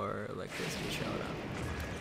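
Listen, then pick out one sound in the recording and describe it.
A lightning bolt strikes with a loud thunderclap.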